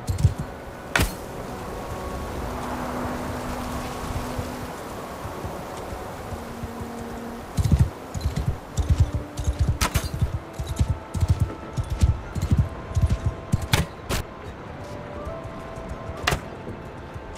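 An arrow is loosed from a bow with a sharp snap.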